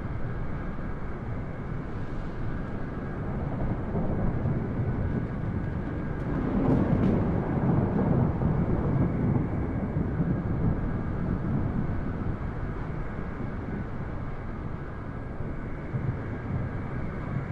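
A jet airliner's engines roar steadily as it rolls down the runway.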